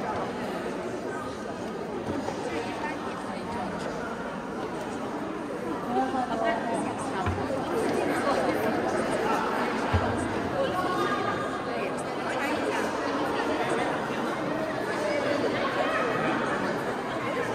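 A choir of young voices sings together in a large echoing hall.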